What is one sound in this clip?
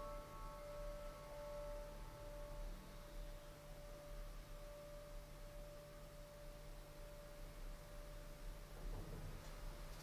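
A piano plays a soft, sustained note that slowly fades.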